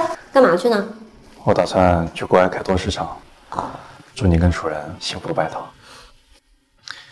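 A man speaks calmly, close by.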